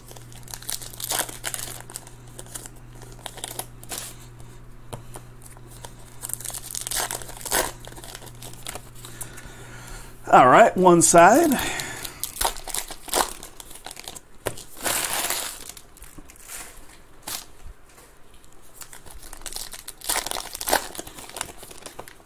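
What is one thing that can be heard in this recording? Foil card packs crinkle and rustle as hands tear them open.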